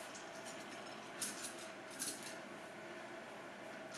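A small dog's claws patter on a wooden floor.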